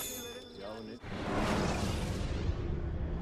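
A soft whooshing sweep rushes in and fades.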